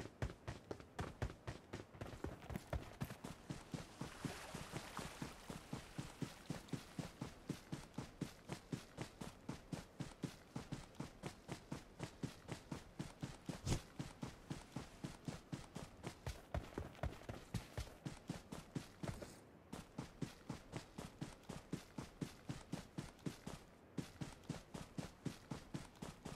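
Footsteps run quickly through grass and over dirt.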